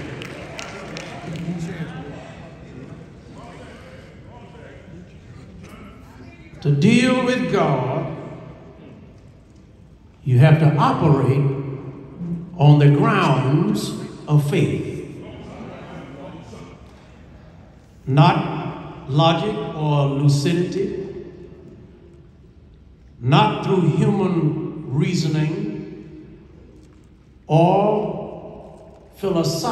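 A man preaches forcefully through a microphone and loudspeakers in a large echoing hall, in loud bursts with pauses.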